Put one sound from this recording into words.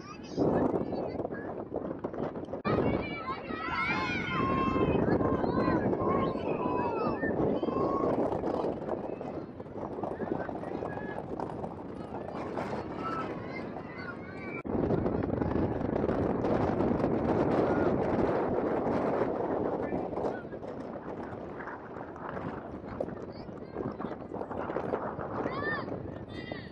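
A crowd cheers and calls out from a distance.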